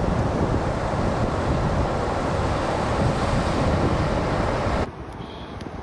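Waves crash and roar in the surf.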